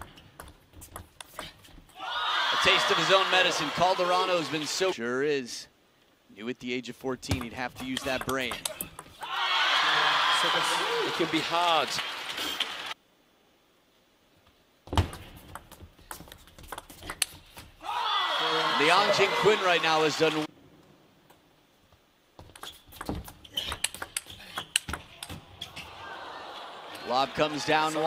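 A ping-pong ball clicks sharply against paddles and a table in quick rallies.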